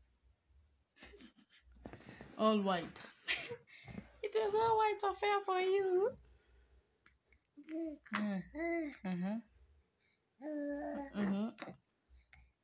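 A woman talks to a baby close by in a high, playful sing-song voice.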